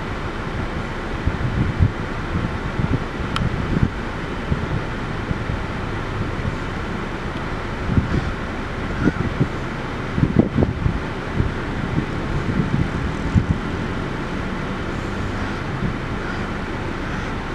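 Wind blows outdoors, gusting and rumbling low.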